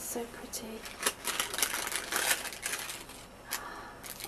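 A paper packet crinkles and rustles as it is handled.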